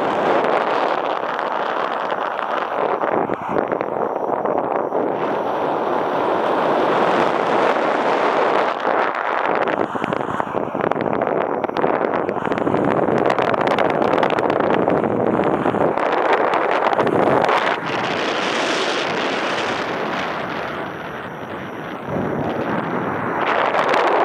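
Strong wind rushes loudly past a microphone.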